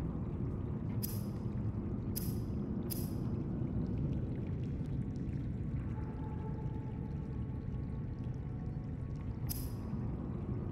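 Short electronic beeps sound as menu buttons are chosen.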